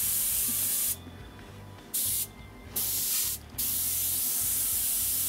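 An airbrush hisses in bursts that start and stop.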